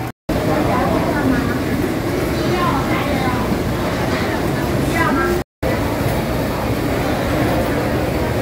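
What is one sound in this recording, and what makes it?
A crowd chatters all around in a busy, echoing market.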